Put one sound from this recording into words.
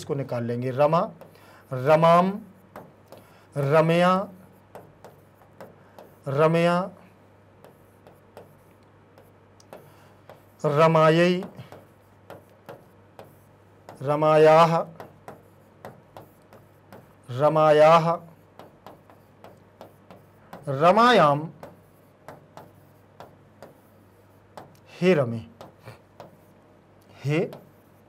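A man speaks in short, drawn-out phrases, close to a microphone.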